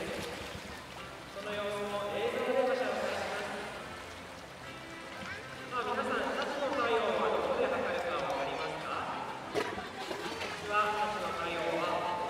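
Water laps gently against the sides of a pool.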